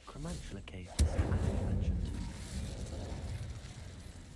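Flames burst and crackle.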